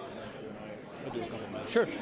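A middle-aged man talks nearby.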